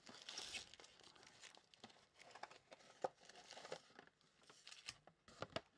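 Plastic-wrapped packs crinkle and rustle as hands shuffle them.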